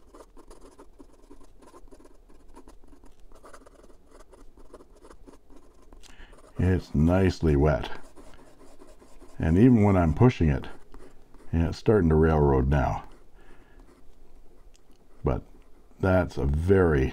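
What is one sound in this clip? A pen nib scratches softly across paper.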